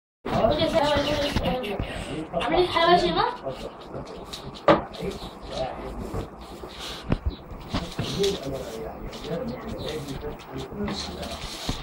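Hands rub and scratch a kitten's fur.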